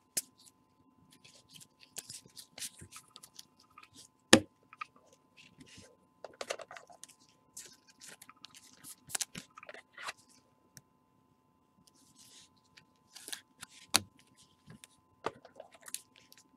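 Gloved hands handle cards with soft rustles and clicks.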